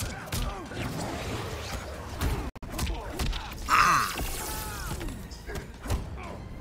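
Heavy blows thud and crack in a fight.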